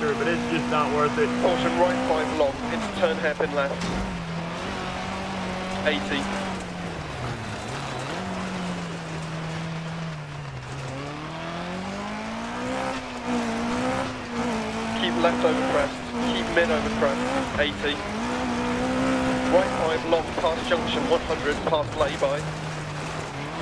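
Gravel crackles and rattles under the tyres.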